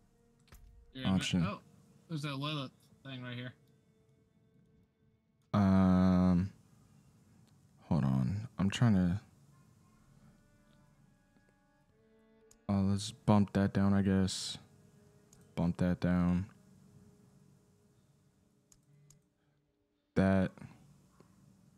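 A man talks casually into a close microphone, in short bursts with pauses.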